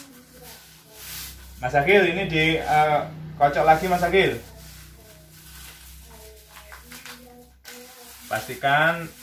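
Small paper strips rustle under hands.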